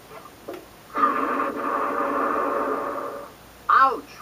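A cartoon game plays a bright, bubbly sound effect.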